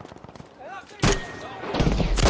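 A machine gun fires a short burst.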